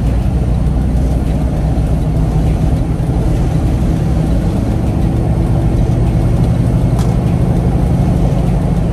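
A vehicle drives steadily, its engine droning low.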